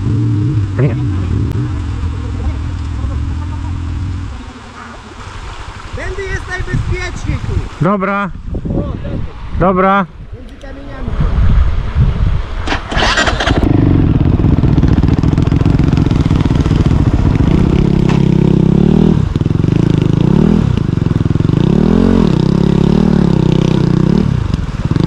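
A motorcycle engine idles close by.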